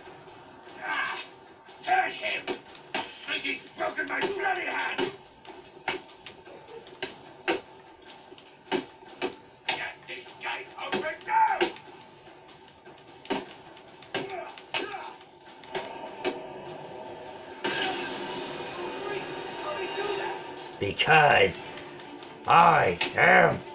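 Punches and blows thud from a video game fight played through a television speaker.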